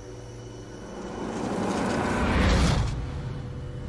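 A car approaches and rushes past close by.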